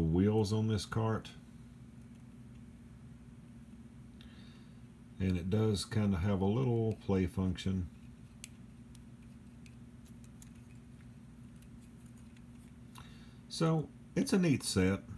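Small plastic toy parts click softly as they are turned in the hands.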